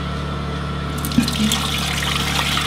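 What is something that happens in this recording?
Thick liquid pours and splashes into a pot.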